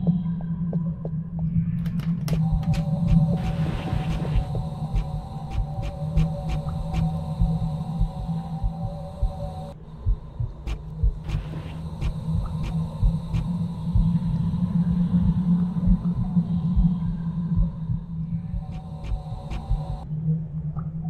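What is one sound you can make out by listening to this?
Quick footsteps thud on a wooden floor.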